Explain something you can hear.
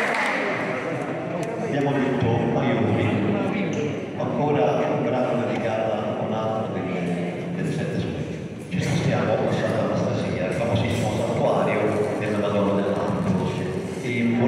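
An older man speaks calmly through a microphone.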